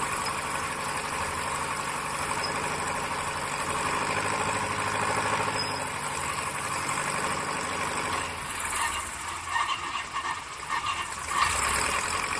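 A small plane's propeller engine drones loudly, then eases off.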